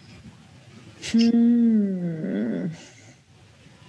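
A woman gives a long, falling exclamation over an online call.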